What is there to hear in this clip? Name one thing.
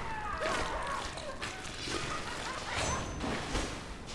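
A sword clangs against metal.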